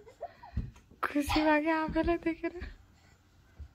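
A baby squeals loudly and excitedly close by.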